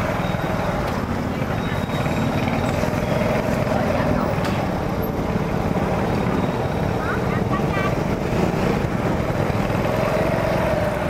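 Motorbike engines hum and putter past on a busy street.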